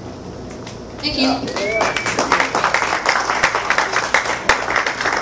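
A young woman speaks into a microphone, heard through loudspeakers in a room.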